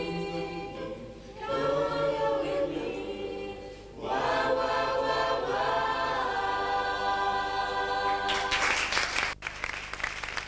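A choir of young voices sings together.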